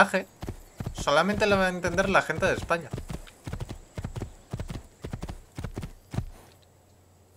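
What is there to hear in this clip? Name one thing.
Hooves gallop quickly on a dirt path.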